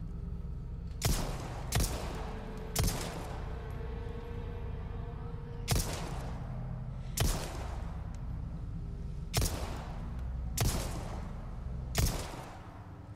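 A pistol fires in loud single shots that echo.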